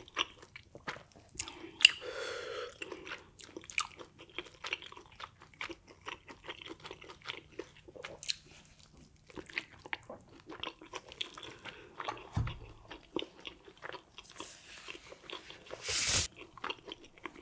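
Food squelches and crackles between fingers close to a microphone.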